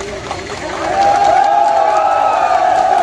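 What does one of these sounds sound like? Men shout slogans together loudly.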